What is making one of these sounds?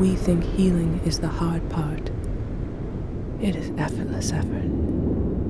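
A young woman sings softly.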